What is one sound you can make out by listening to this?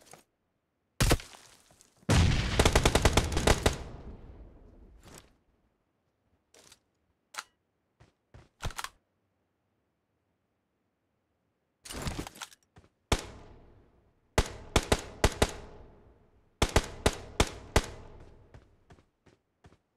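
Gunshots crack in quick bursts with a short echo.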